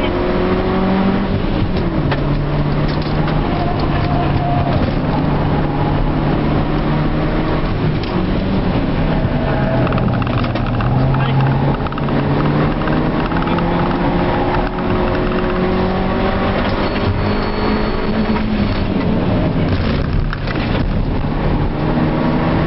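Tyres hum and rumble on the road.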